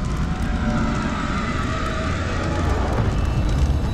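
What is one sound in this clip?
Footsteps slap quickly on a stone floor.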